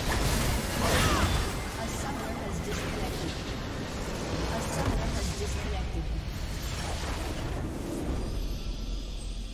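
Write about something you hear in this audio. Game spell effects crackle and boom in a hectic battle.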